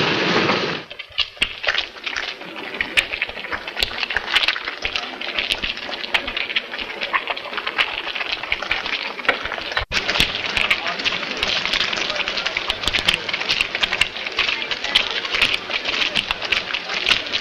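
Many footsteps crunch on the ground as a crowd walks.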